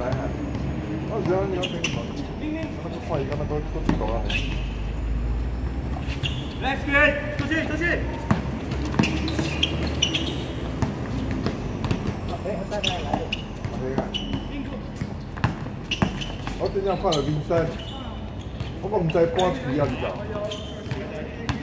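Young men call out and talk to each other during the game.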